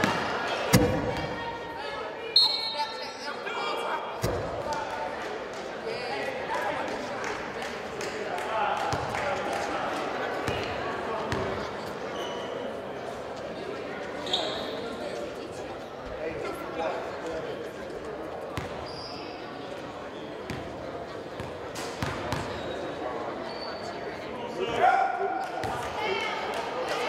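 Young people talk and call out across the gym.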